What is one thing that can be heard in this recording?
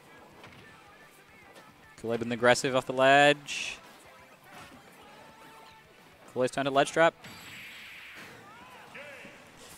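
Video game sound effects whoosh and clash.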